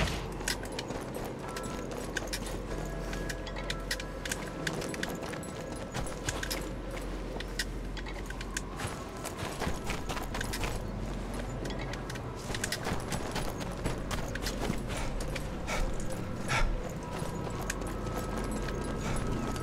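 Footsteps crunch quickly over snow and stone.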